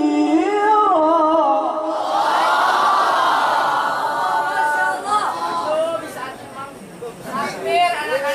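A young man chants melodiously into a microphone, heard through loudspeakers.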